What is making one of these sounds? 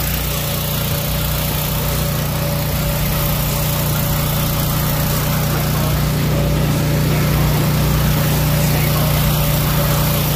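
An electric blower fan whirs steadily.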